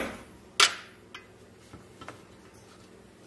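A metal tool scrapes and taps against rusty metal.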